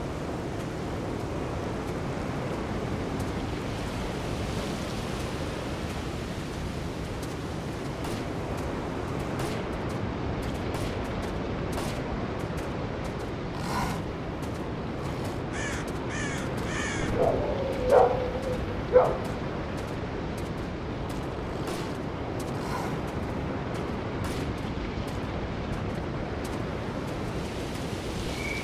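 Rain falls steadily on trees outdoors.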